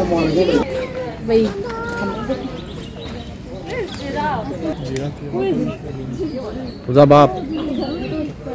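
Men and women talk casually nearby.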